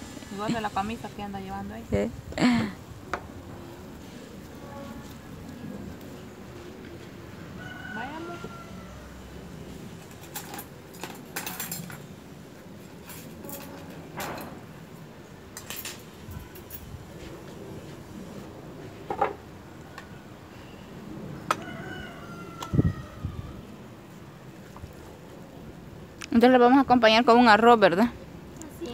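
Dishes clink on a table.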